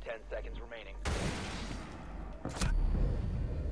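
Loud gunshots ring out close by.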